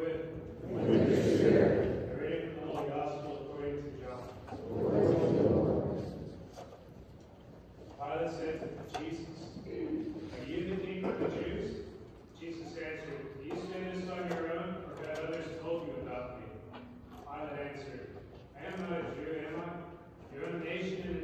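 A congregation of men and women sings together in an echoing hall.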